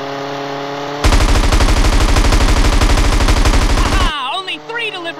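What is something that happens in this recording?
Machine guns fire in a rapid, loud burst.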